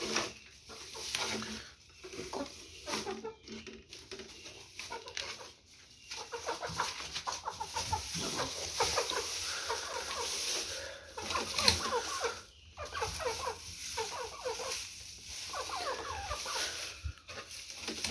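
Dry straw rustles and crackles as a hand rummages through it.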